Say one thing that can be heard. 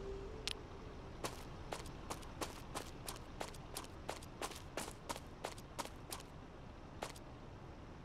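Footsteps tap steadily.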